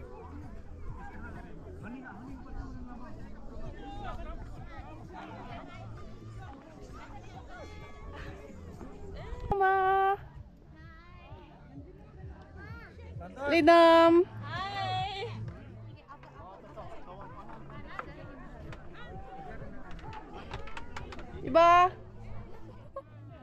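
Young women chat and laugh nearby outdoors.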